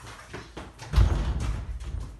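Knees thump onto a hard floor.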